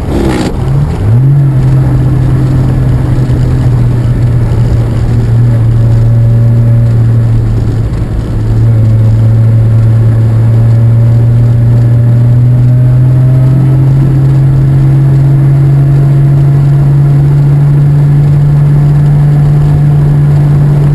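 An old car engine drones steadily up close.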